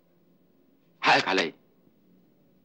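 A middle-aged man speaks briefly.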